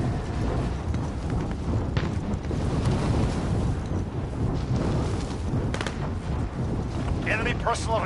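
Wind roars steadily past during a fast fall through the air.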